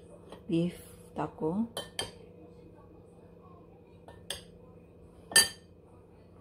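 A metal spoon clinks against a bowl.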